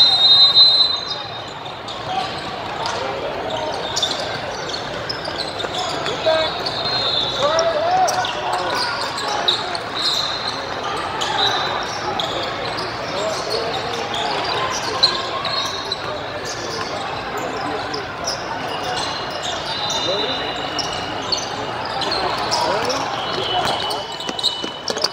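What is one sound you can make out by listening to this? A crowd of players and onlookers chatters and calls out across the hall.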